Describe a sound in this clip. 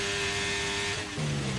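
A racing car engine drops in pitch as the car brakes.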